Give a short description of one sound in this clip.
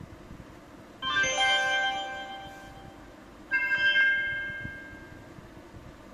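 A bright ringing jingle plays from a small device speaker.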